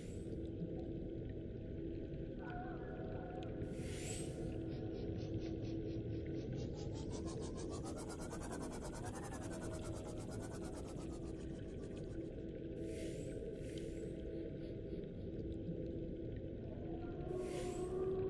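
A submarine's engine hums steadily underwater.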